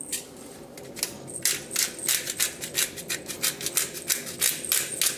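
A pepper grinder crunches and clicks rapidly.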